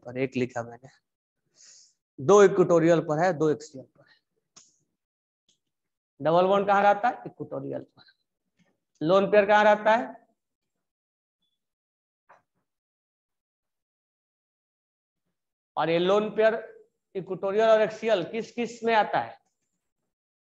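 A young man speaks calmly close by, in short phrases with pauses.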